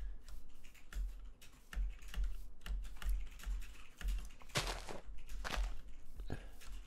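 Footsteps thud softly and steadily on grass.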